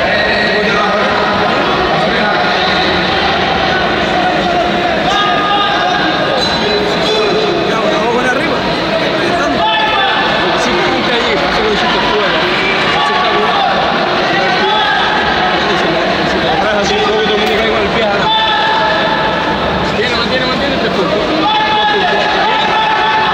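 A crowd of men and women chatters and shouts in a large echoing hall.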